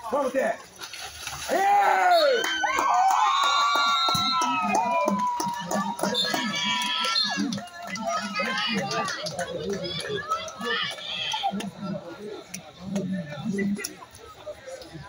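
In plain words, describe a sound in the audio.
Men shout and cheer with excitement in an echoing indoor space.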